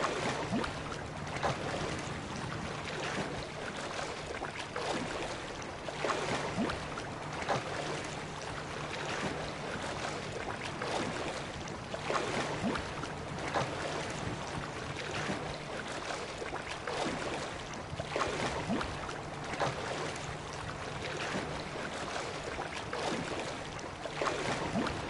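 Waves lap and splash steadily all around.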